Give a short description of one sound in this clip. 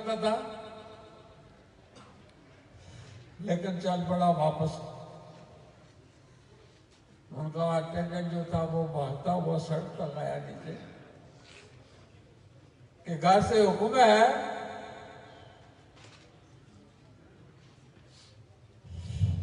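An elderly man speaks slowly and with emphasis into a microphone, heard through loudspeakers with echo.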